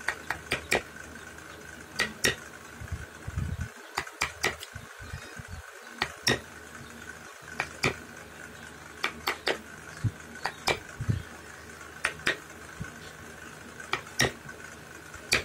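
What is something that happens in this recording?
A mallet taps sharply on a chisel cutting into wood, in uneven bursts.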